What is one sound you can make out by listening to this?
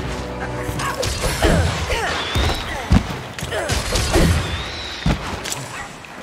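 Weapon blows strike a creature with sharp impacts.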